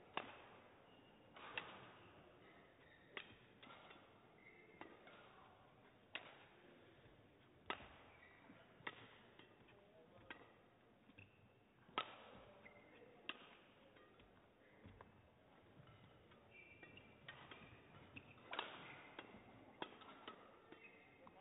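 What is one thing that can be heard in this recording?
A shuttlecock is struck sharply back and forth with rackets, echoing in a large hall.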